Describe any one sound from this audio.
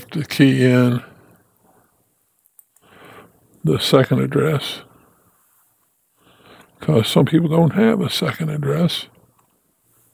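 A man explains calmly, close to a microphone, in short phrases with pauses.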